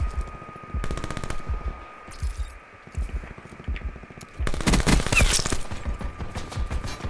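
Gunshots fire in rapid bursts, echoing indoors.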